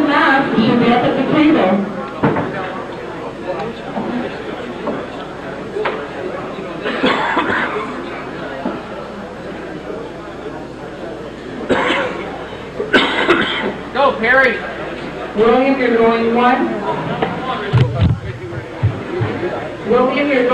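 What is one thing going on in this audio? A crowd murmurs and calls out in a room.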